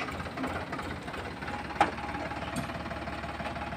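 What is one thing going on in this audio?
Soil and clods tumble from a tipping trailer.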